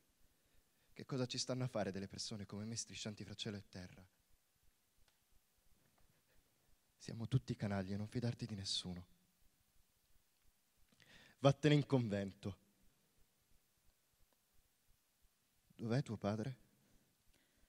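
A man speaks slowly through a microphone in a large hall, pausing between phrases.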